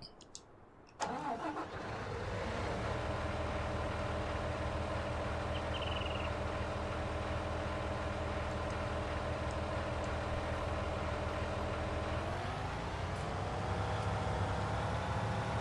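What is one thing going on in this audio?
A heavy diesel engine rumbles steadily and revs higher near the end.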